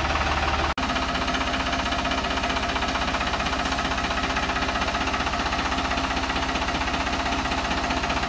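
A diesel farm tractor engine runs.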